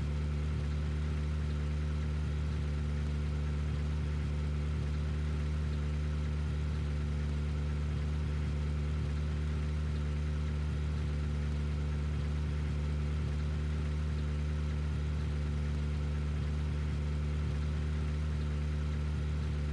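A sports car engine idles with a steady low rumble.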